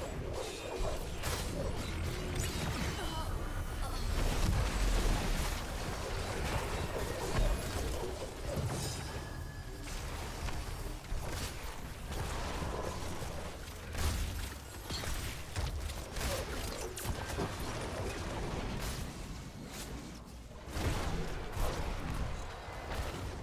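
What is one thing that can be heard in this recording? Game spell blasts and laser zaps crackle and boom throughout.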